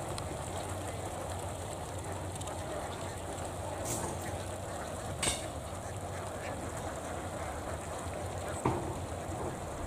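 A flock of ducks quacks and chatters.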